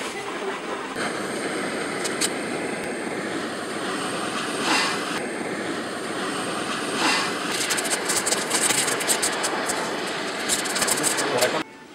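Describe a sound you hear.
A gas torch hisses steadily with a roaring flame.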